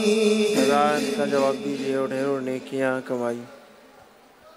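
A man chants a prayer in a drawn-out, melodic voice through a microphone.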